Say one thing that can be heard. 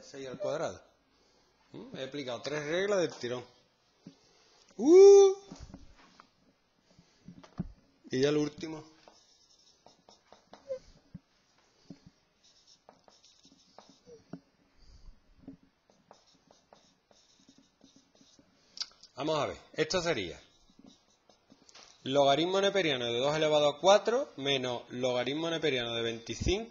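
A man speaks calmly, close by, in short bursts with pauses.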